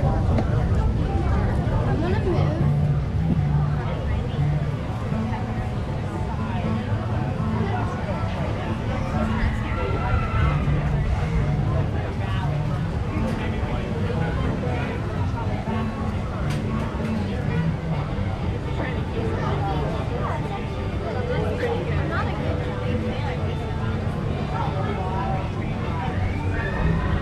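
A crowd of adults and children chatter nearby outdoors.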